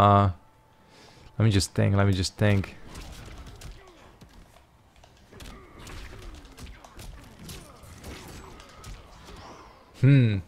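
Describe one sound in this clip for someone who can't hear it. Heavy punches and kicks land with hard thuds.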